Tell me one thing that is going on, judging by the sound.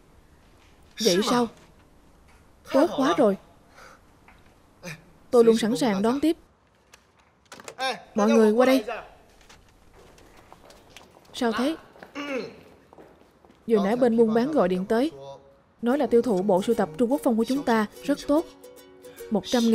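A young man talks on a phone with excitement.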